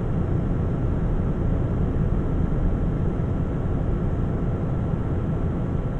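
Tyres roll on the road with a steady low drone.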